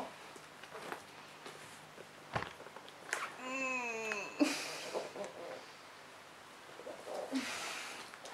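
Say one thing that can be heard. A cardboard box and books rustle and thump as they are handled.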